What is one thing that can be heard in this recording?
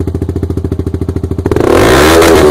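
A motorcycle engine idles with a rapid, steady burble.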